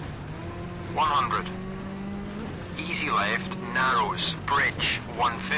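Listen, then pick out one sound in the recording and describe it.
A man speaks quickly and with animation through a microphone.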